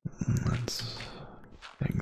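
Blocks crunch and crumble as they are dug out.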